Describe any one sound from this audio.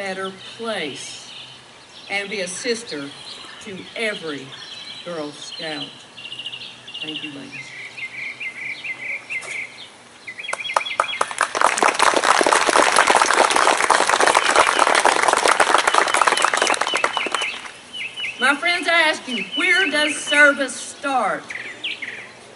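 A woman speaks calmly over a loudspeaker outdoors.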